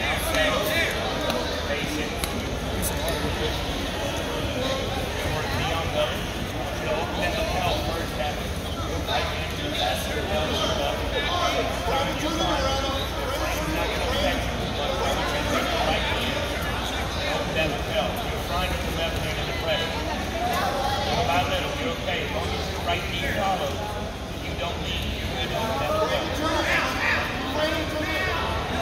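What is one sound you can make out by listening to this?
A crowd of spectators shouts and chatters in a large echoing hall.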